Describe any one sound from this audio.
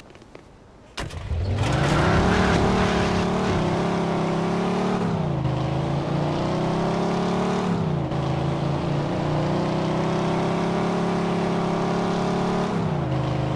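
A car engine revs hard and roars as the car speeds away.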